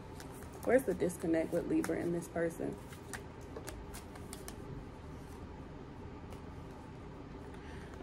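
Playing cards riffle and rustle as they are shuffled.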